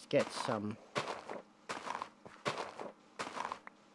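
A shovel digs into dirt with repeated crunchy scrapes.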